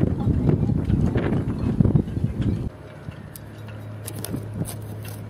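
Rigging clinks against boat masts.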